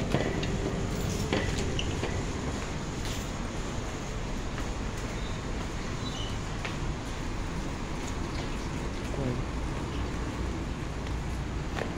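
Footsteps walk along a paved walkway.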